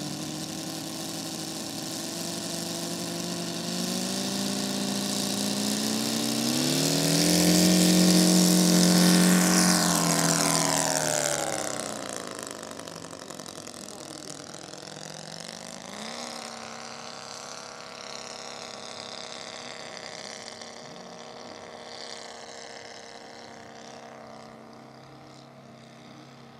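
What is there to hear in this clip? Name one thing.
A model plane's engine buzzes loudly, rising in pitch as it takes off, then drones more faintly as it flies away and circles.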